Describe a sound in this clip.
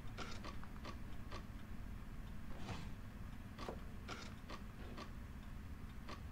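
Wooden blocks click and clack as they turn.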